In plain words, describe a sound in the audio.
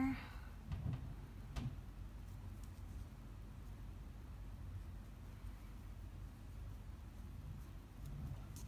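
Hands rustle softly with yarn and a crochet hook.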